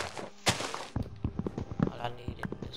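An axe chops at wood with quick, repeated knocks.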